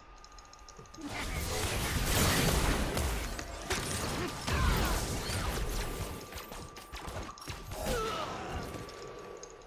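Fantasy combat sounds clash and burst loudly.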